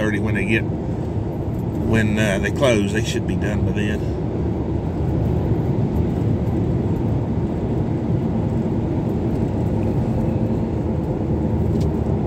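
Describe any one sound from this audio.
A car engine and tyres rumble steadily on the road.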